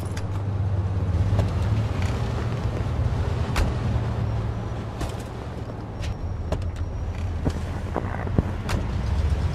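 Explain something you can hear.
A car engine idles with a low steady rumble.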